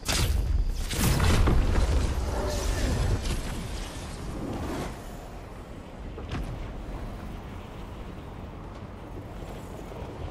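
Wind rushes past during a fall through the air.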